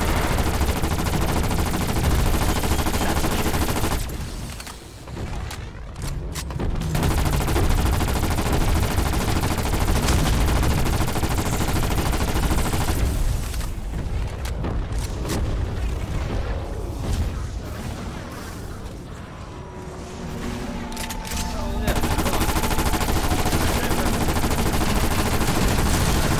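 Rapid gunfire blasts loudly in bursts.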